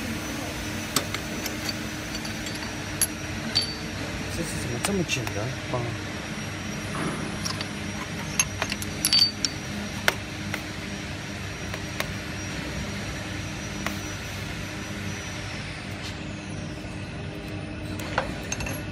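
Metal parts clink and knock as hands fit them together.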